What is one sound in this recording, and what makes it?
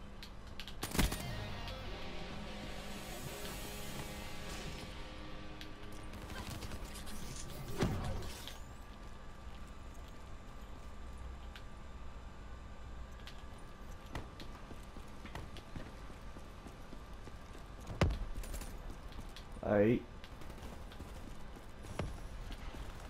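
Gunshots crack in sharp single bursts.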